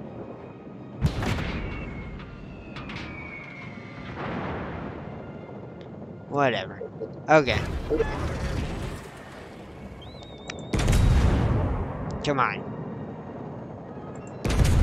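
Heavy naval guns boom in bursts.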